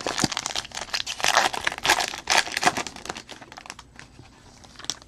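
Foil wrapping crinkles and tears as it is torn open by hand close by.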